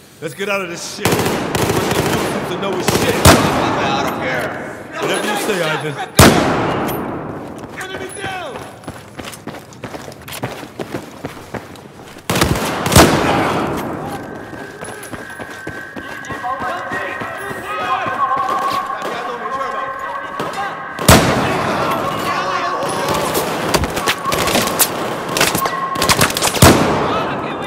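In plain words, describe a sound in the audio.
Sniper rifle shots crack loudly, one after another.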